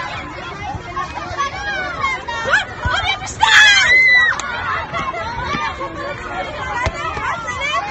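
Young girls shout and laugh excitedly nearby.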